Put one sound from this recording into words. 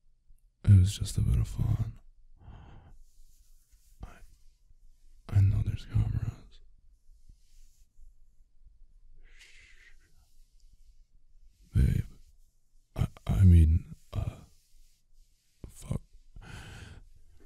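A young man speaks in a low, soft, teasing voice close to a microphone, with pauses.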